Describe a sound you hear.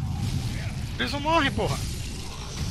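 A monster lets out a shrill, warbling screech.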